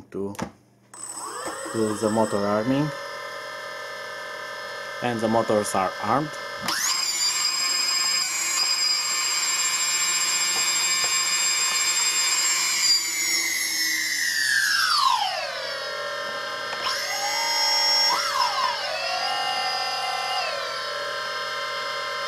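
Small electric motors whine, speeding up and slowing down.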